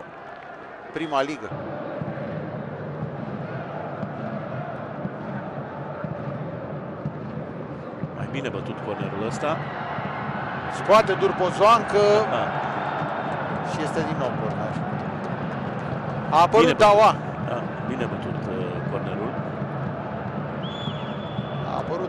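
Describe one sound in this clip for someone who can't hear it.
A large stadium crowd murmurs and chants steadily in the open air.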